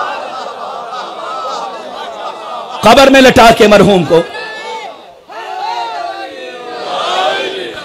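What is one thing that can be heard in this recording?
A man speaks with animation through a microphone, in a large echoing hall, his voice rising loudly at moments.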